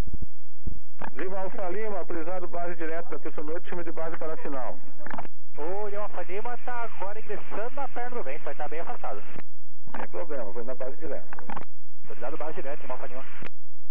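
A man speaks steadily over a crackly headset radio.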